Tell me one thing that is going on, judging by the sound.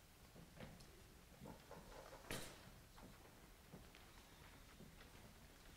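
Musicians shift and settle quietly in a large hall, with faint knocks and rustles.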